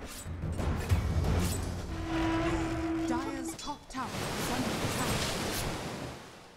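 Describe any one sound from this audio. Magical spell effects crackle and whoosh.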